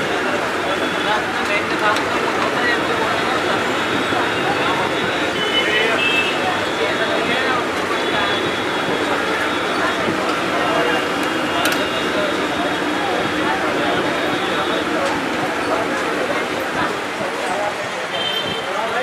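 Hot oil sizzles and bubbles steadily in a large pan.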